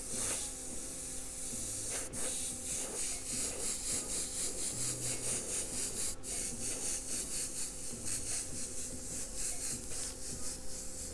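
An airbrush hisses in short, rapid bursts.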